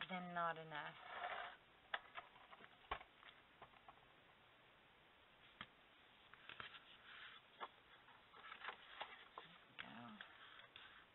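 Paper rustles and slides against a tabletop.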